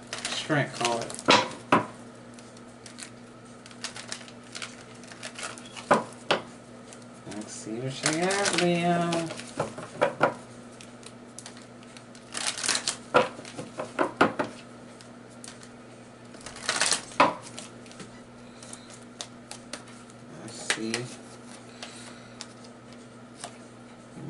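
Cards tap and slap onto a wooden table.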